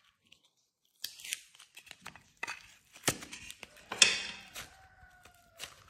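Soft modelling dough squishes and crinkles as it is peeled from a mould.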